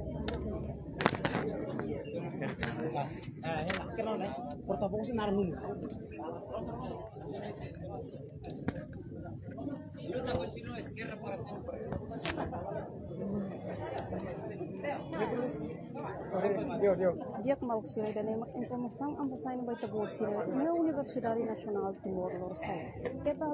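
A crowd of young people chatters all around, outdoors.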